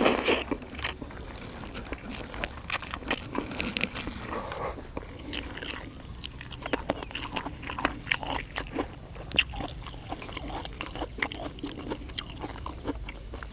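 A man chews food with wet smacking sounds.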